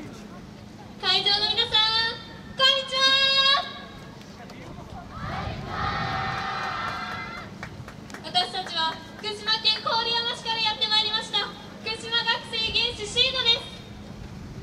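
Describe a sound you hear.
A group of young women chant loudly in high voices, in short bursts.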